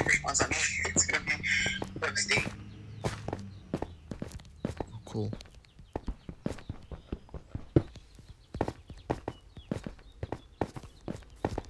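A pickaxe chips and knocks at stone in quick taps.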